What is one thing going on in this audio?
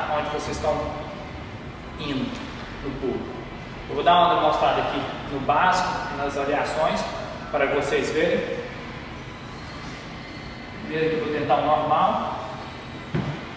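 A young man talks calmly to the listener in a large echoing hall.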